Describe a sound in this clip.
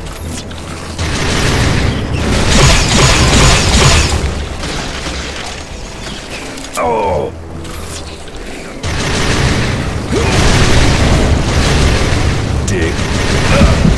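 An energy gun fires crackling, buzzing bursts.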